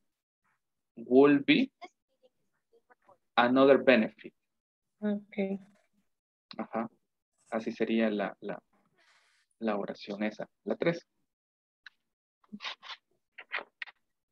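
A woman speaks over an online call.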